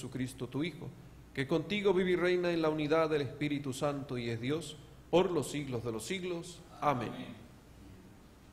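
A man sings a chant into a microphone in a reverberant hall.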